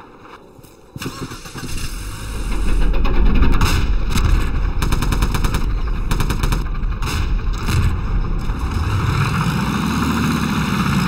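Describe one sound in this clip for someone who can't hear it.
A tank engine rumbles as the tank drives off and picks up speed.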